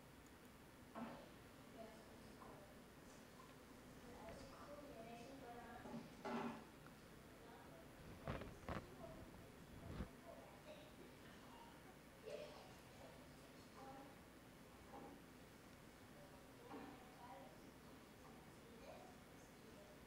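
A young girl talks quietly, heard through a loudspeaker in a large room.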